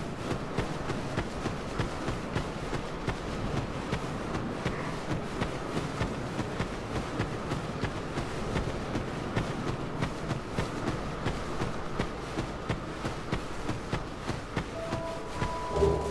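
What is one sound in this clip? Footsteps crunch quickly over grass and dirt.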